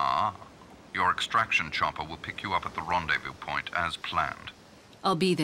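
A man speaks through a radio.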